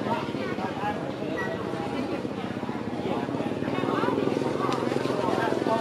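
Leaves and branches rustle as a monkey climbs.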